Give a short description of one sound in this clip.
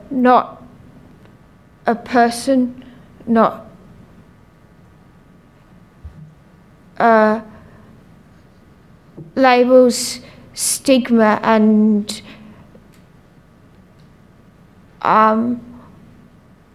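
A young woman speaks softly and haltingly into a microphone, with long pauses.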